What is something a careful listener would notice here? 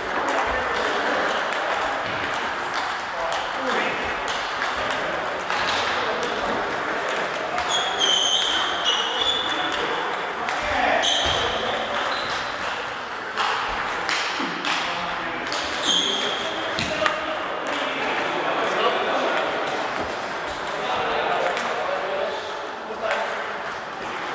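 A crowd of players chatters in the background.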